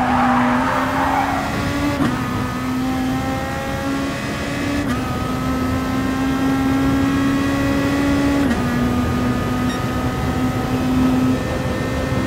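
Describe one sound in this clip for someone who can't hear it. A racing car engine roars at high, steady revs.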